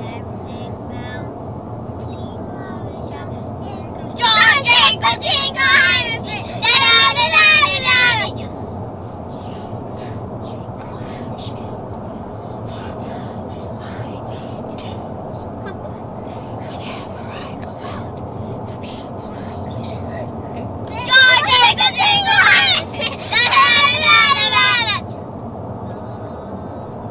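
Road noise rumbles low inside a moving car.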